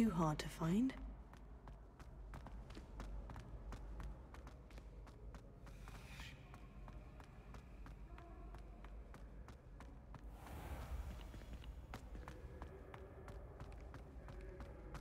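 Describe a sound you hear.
Quick footsteps tap on a stone floor.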